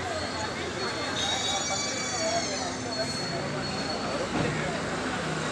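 Several men and women talk nearby.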